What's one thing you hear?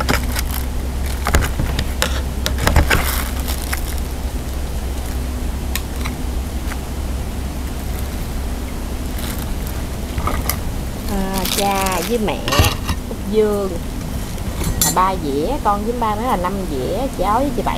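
A woman cuts vegetables with small snapping sounds.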